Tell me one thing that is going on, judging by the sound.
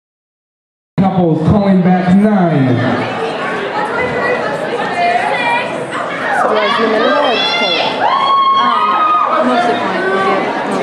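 A crowd of men and women chatters and calls out in a large echoing hall.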